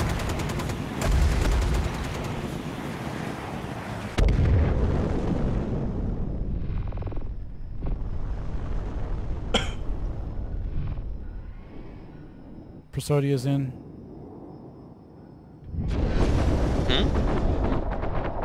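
A spacecraft engine roars and rumbles.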